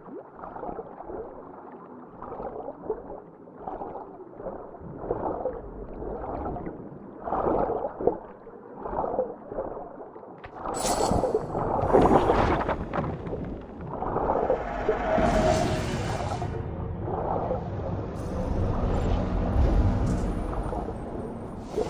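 Water swirls and gurgles, heard muffled as if from underwater.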